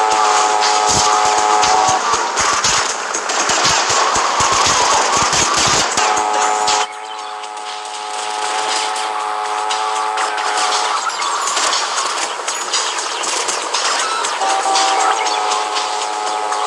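A motorcycle engine runs as the motorcycle rides along a road.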